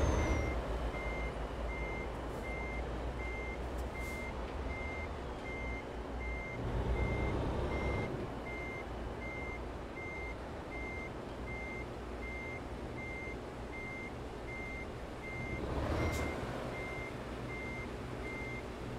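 A heavy diesel truck engine drones while cruising.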